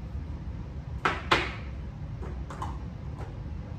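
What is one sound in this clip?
Objects knock against a table as they are set down.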